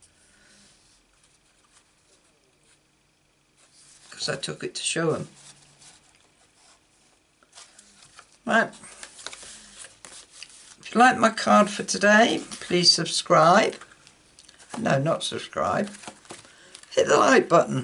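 Stiff paper cards rustle and tap as they are handled on a table.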